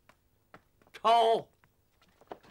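A man shouts a sharp order.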